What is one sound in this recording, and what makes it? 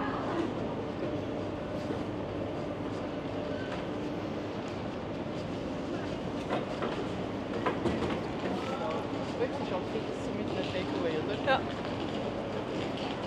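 A busy street murmurs with distant voices of a crowd outdoors.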